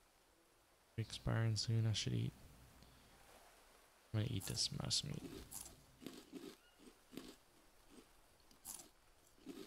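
A person chews and gulps down food.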